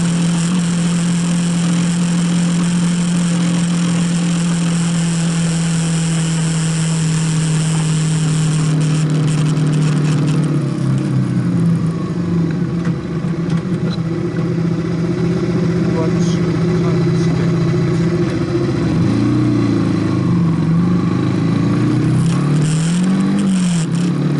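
A motorcycle engine hums steadily, then its pitch rises and falls as the rider slows and accelerates.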